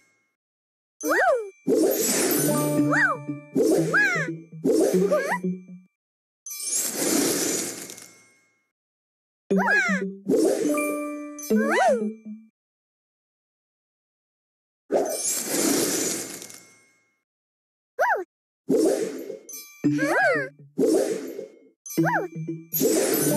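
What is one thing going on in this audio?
Bright game chimes and pops ring out as pieces match and burst.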